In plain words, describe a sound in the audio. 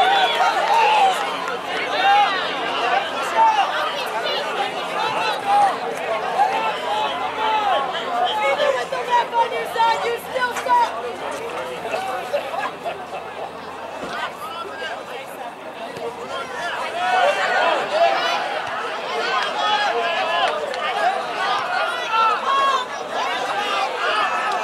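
A crowd of spectators cheers and shouts from the stands outdoors.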